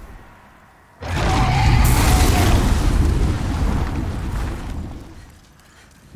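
A dragon's fiery blast roars and explodes loudly.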